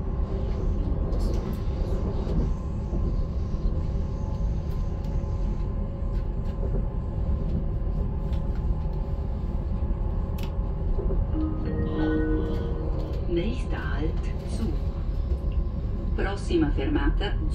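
A passenger train rumbles along the tracks, heard from inside the carriage.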